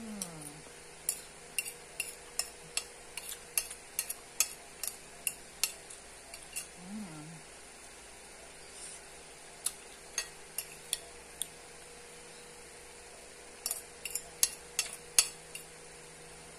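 A spoon clinks and scrapes against a plate.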